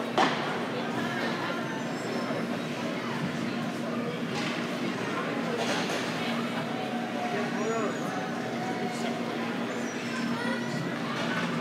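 Skates scrape and glide across the ice in a large echoing rink.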